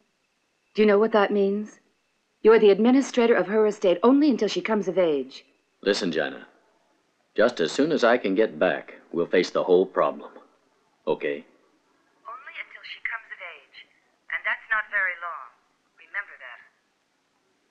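A man talks calmly into a telephone close by.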